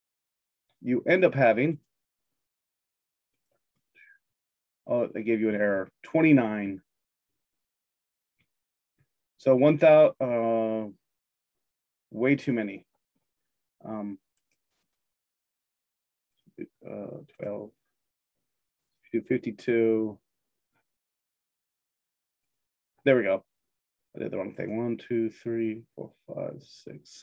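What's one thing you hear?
A man speaks calmly in short phrases, heard close through a microphone.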